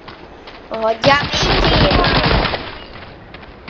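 A submachine gun fires a rapid, loud burst.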